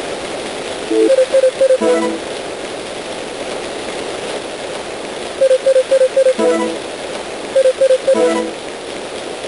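Short electronic beeps chirp in quick bursts.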